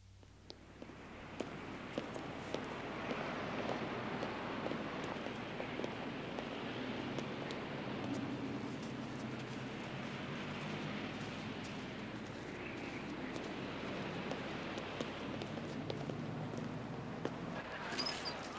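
Cars drive past on a nearby street.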